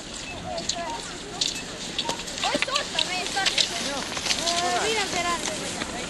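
Skis swish and scrape over snow as skiers pass close by.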